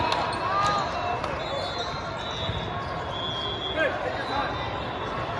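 Young players shout and cheer to one another.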